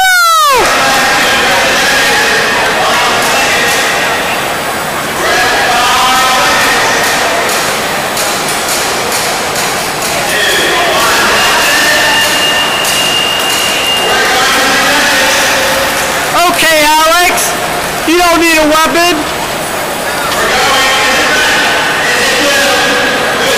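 A crowd of spectators chatters in a large hall.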